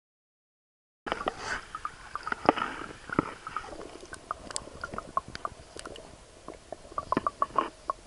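Water gurgles and splashes up close, heard from under the surface.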